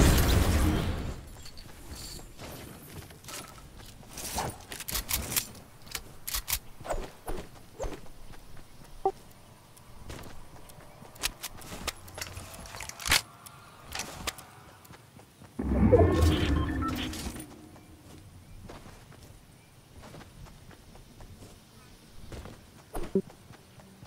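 Quick footsteps patter over grass.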